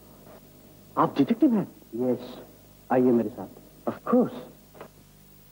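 A man speaks firmly and with emphasis, close by.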